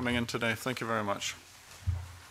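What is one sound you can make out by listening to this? A man speaks through a microphone, then stops.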